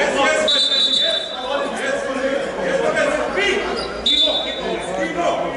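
Sneakers squeak sharply on the court floor.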